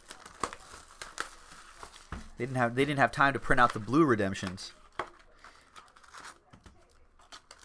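Cardboard and foil wrappers rustle and crinkle as a box is opened.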